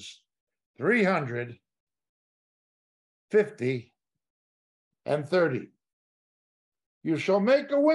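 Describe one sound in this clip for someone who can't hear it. A middle-aged man speaks calmly and slowly, close to a microphone, with pauses between phrases.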